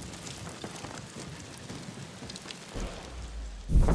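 Footsteps thud quickly on wooden boards.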